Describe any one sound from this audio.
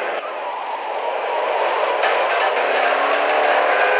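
Car tyres screech while skidding around a corner.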